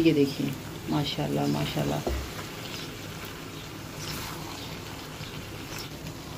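A spatula scrapes and stirs food in a pan.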